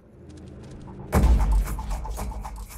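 A sniper rifle fires a loud shot that echoes.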